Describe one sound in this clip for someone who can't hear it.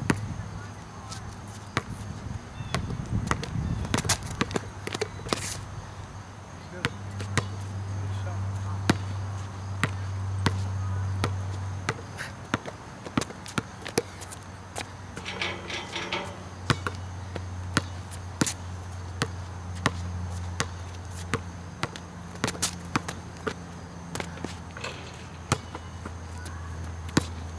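A basketball bounces repeatedly on an outdoor court.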